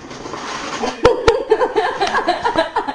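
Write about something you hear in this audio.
A boy laughs and talks excitedly close by.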